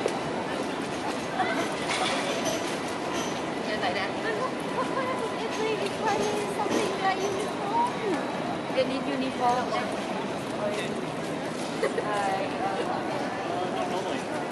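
Men and women talk in passing on a busy street.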